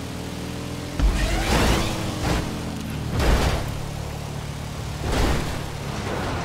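A car lands with heavy thuds and bumps.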